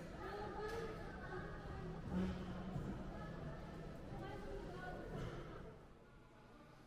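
A crowd chatters in a large, echoing indoor hall.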